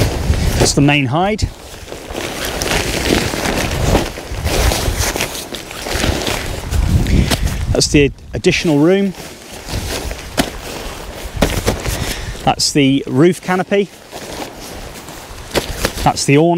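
Fabric rustles as gear is packed into a bag.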